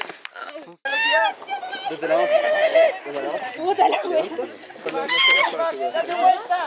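A young woman laughs and squeals nearby.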